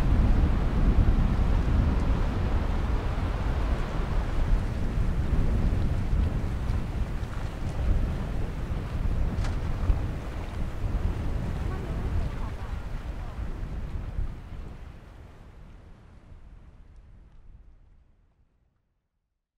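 Sea water laps gently against a stone pier.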